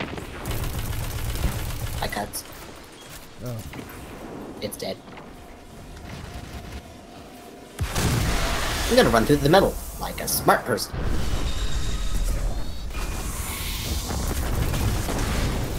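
Gunfire from a video game cracks in short bursts.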